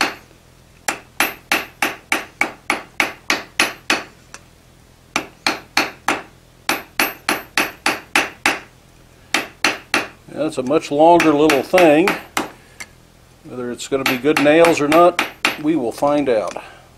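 A hammer strikes hot metal on an anvil in quick bursts of ringing blows.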